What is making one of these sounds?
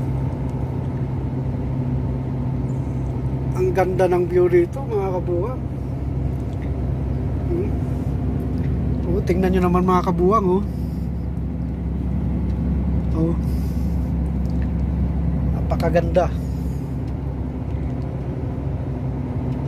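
A vehicle engine hums steadily inside a moving cab.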